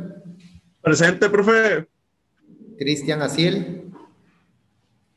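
A young man speaks over an online call.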